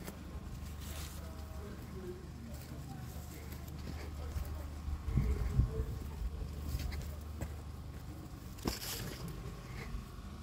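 Footsteps crunch softly on dry soil.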